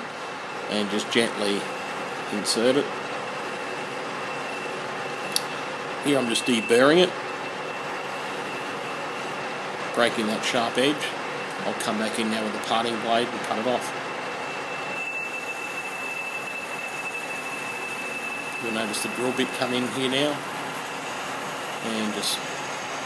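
A lathe motor hums steadily as the chuck spins.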